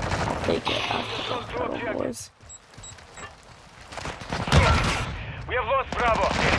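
A rifle fires several quick shots.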